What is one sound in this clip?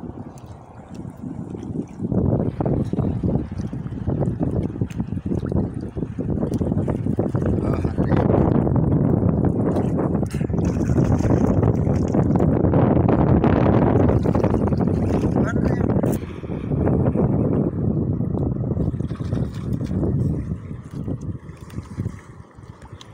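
Water sloshes and laps against the side of a small boat.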